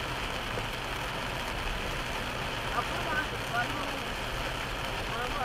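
Rain patters steadily on a car windshield.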